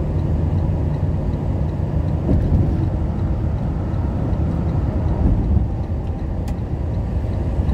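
Tyres roar on a wet road.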